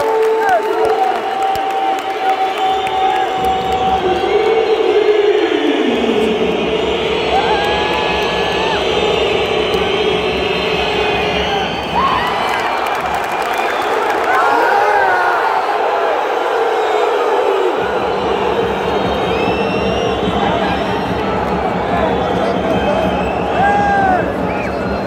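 A large crowd cheers and chants loudly in a big echoing arena.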